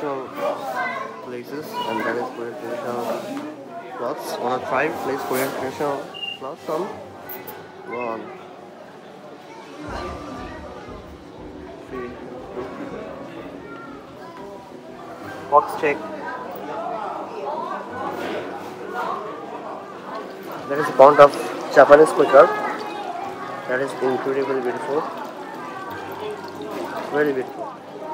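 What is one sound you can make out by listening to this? A crowd of people chatters indoors.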